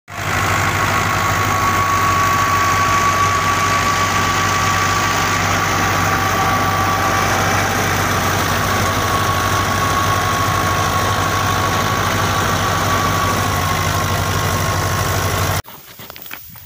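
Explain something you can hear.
A threshing machine roars steadily nearby.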